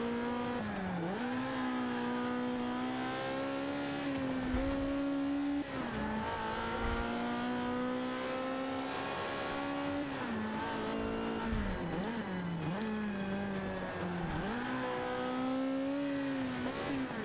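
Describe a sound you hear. A race car engine roars, revving up through the gears and dropping in pitch at each shift.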